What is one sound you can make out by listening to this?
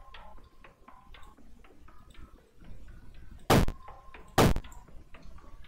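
Short electronic clicks sound as pieces are placed in a game.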